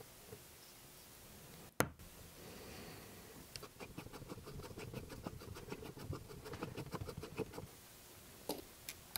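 Small metal parts click and tap as a tool works on them.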